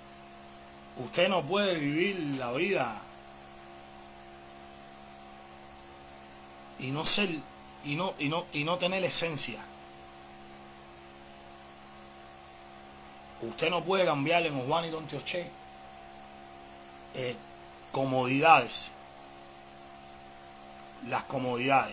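A man talks calmly and close up, in short bursts with pauses.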